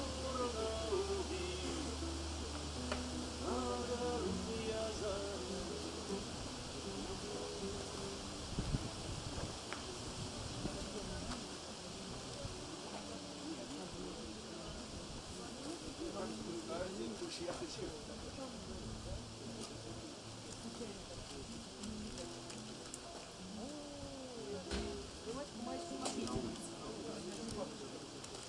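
An acoustic guitar strums chords outdoors.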